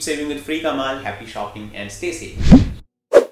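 A young man speaks with animation, close to the microphone.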